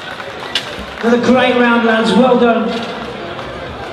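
A man announces over a loudspeaker.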